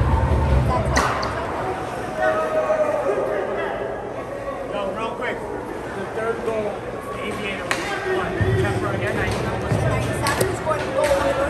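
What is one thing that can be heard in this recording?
Hockey sticks clack on the ice and the puck.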